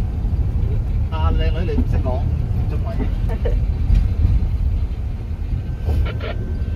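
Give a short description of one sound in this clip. A car engine rumbles low and steady inside the car.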